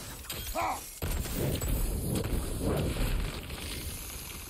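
A fiery explosion bursts with a loud roar.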